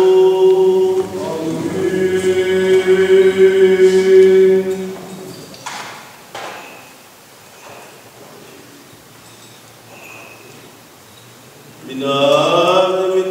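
Men chant together in a slow, sustained tone in a large echoing hall.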